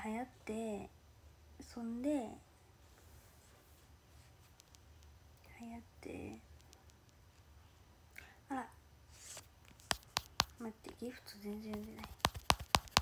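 A young woman talks casually and close to a microphone, in short bursts with pauses.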